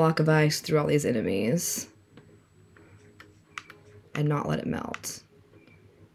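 A woman speaks with animation, close to a microphone.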